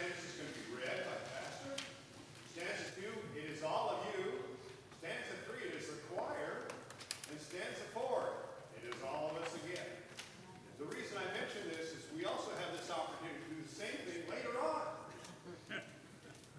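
An elderly man reads aloud into a microphone in a large echoing hall.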